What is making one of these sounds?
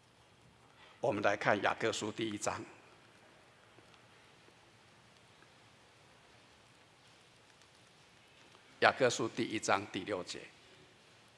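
An elderly man speaks calmly through a microphone in short phrases.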